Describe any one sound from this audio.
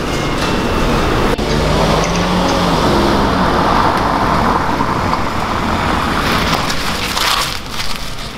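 A car engine hums as a car pulls up and stops.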